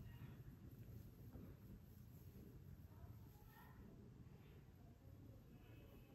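Fingers rustle through hair close by.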